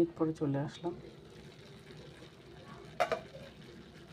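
A metal lid clanks as it is lifted off a pan.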